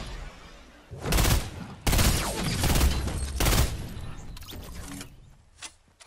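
Gunshots fire in loud, rapid bursts.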